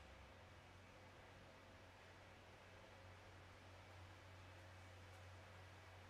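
An ice resurfacing machine hums steadily in a large echoing rink.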